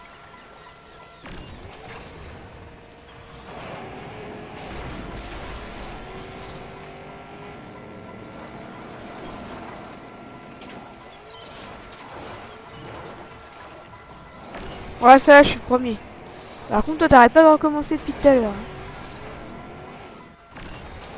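Water splashes as a buggy drives through it.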